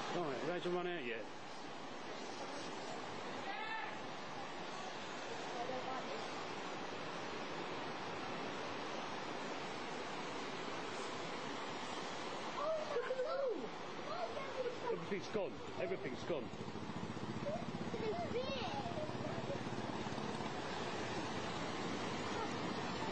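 Floodwater rushes and churns steadily.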